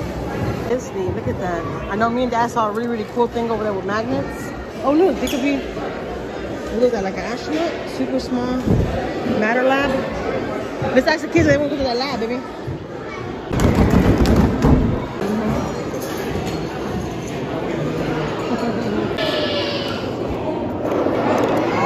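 Children and adults chatter nearby in a busy, echoing hall.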